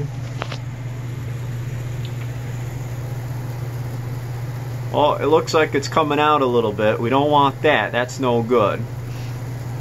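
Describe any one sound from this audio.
A sandwich sizzles softly in a hot contact grill.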